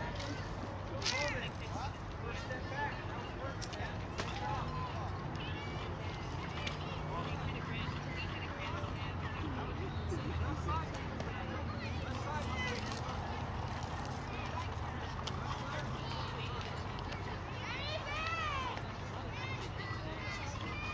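Children shout and call out across an open field outdoors.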